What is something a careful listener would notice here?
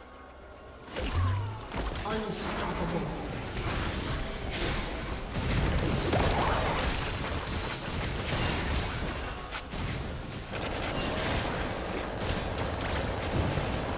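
Game spell effects and hits crackle and burst in quick succession.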